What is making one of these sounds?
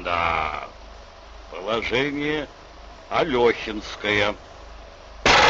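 An elderly man speaks in a strained, muttering voice close by.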